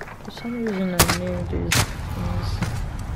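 A rifle fires loud sharp shots.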